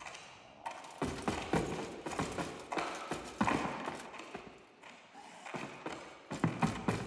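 Armoured footsteps thud on wooden planks.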